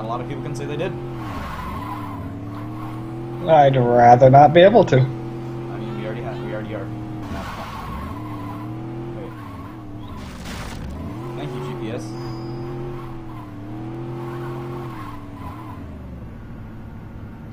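A car engine revs up and down as a car speeds along.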